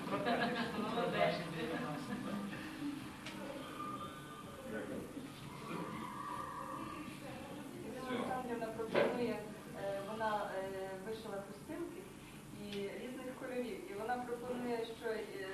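Several adults talk and chatter close by.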